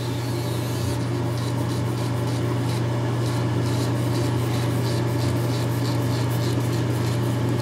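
An electric trimmer scrapes through stubble in quick repeated strokes.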